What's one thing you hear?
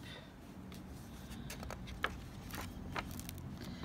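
A paper page turns with a soft rustle.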